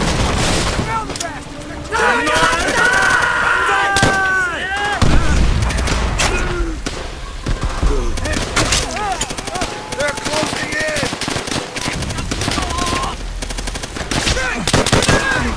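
Rifles fire in rapid, sharp bursts nearby.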